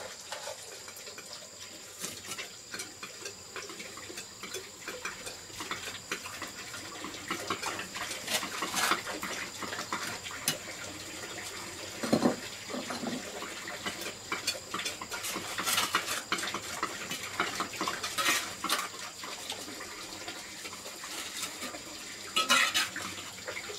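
Bricks knock against each other as they are set in place.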